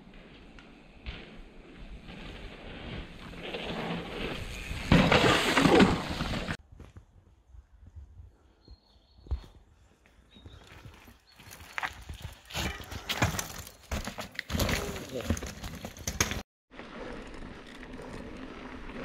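A mountain bike rolls over a dirt trail.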